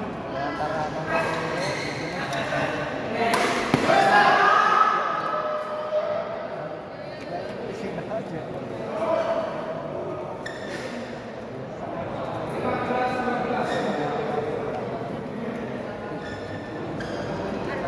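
Shuttlecocks are struck with rackets, giving sharp pops.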